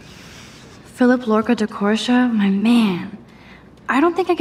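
A young woman talks to herself with animation, close by.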